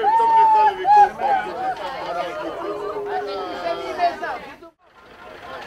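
An accordion plays a lively folk tune.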